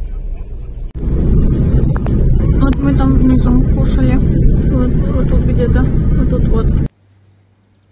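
A car drives along a road with a steady rumble.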